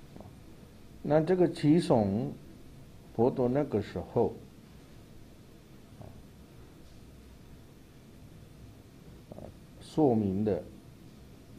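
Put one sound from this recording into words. A man speaks calmly into a microphone in short phrases, with long pauses.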